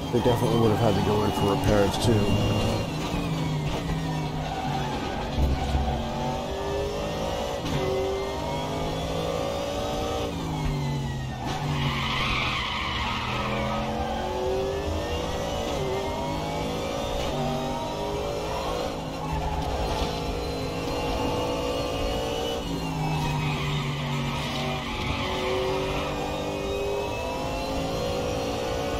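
A racing car engine roars, revving up and dropping through the gears.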